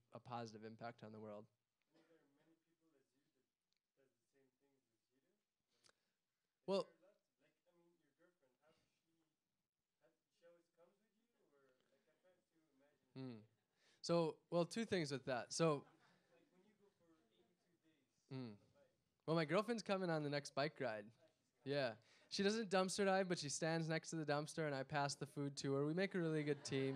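A man speaks calmly into a microphone, heard through loudspeakers in a large echoing hall.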